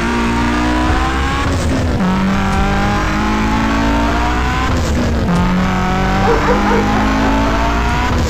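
A car engine revs hard, rising in pitch and dropping as it shifts gears.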